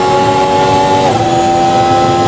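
A Formula One car's engine drops in pitch as it shifts up a gear.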